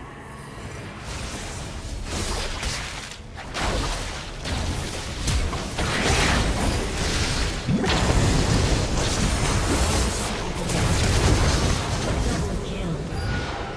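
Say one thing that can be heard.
Spell blasts and magical impacts crash in a busy fight.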